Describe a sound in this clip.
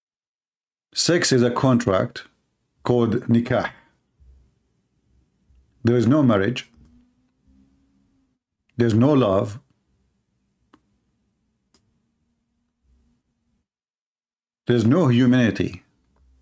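A man speaks with animation in short bursts, heard through a microphone.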